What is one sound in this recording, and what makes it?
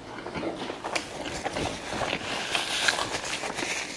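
Paper wrapping crinkles in a man's hands.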